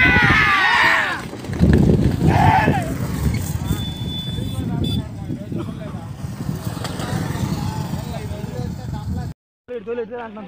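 Men shout with excitement outdoors.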